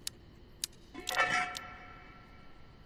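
A crate lid creaks open with a short clatter.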